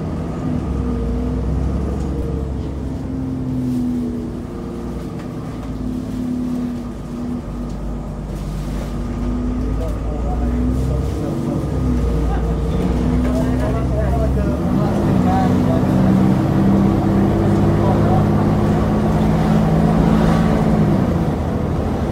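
A bus engine hums and whines steadily as the bus drives.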